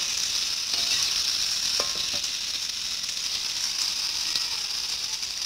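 A metal spatula scrapes against the pan.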